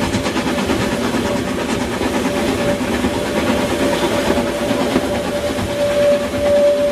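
Train carriages rumble and clatter along the track.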